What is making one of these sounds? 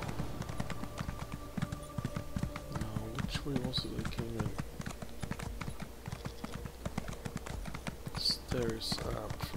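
Horse hooves clop steadily on stone and snow.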